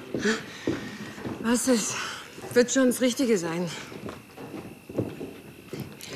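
An elderly woman speaks with emotion, close by.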